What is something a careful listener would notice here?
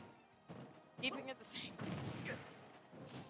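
A video game explosion booms.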